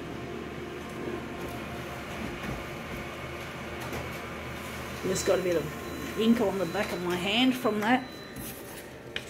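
A copying machine hums steadily.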